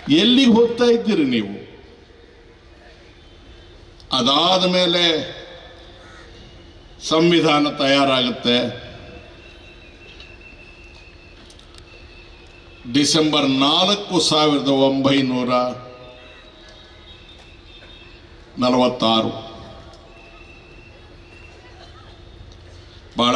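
An elderly man speaks forcefully into a microphone over loudspeakers, in bursts with pauses.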